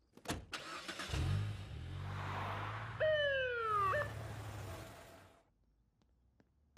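A car engine starts and runs, then drives off.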